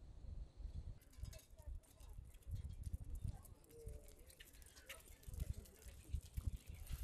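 Small dogs' paws and footsteps patter on pavement.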